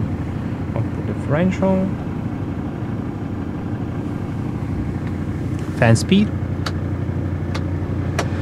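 A diesel engine idles with a steady low rumble.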